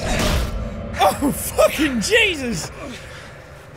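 A young man speaks with animation into a headset microphone.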